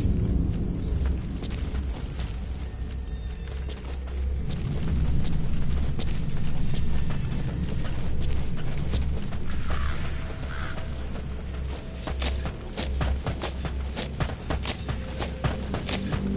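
Footsteps crunch quickly over gravel and dirt.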